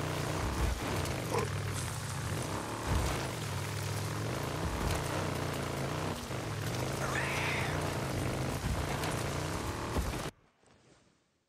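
Tyres crunch over a dirt trail.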